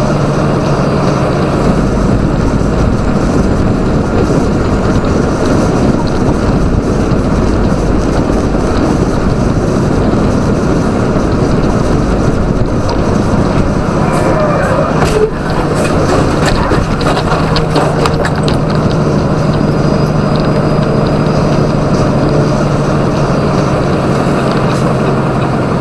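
Tyres hum on the road at speed.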